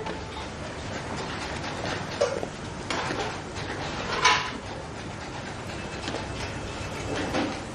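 Utensils clatter and clink against metal.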